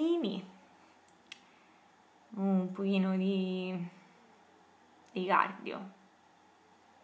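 A young woman speaks calmly and close by, in short phrases with pauses.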